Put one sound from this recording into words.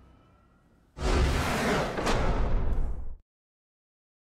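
A short, loud victory fanfare blares from a video game.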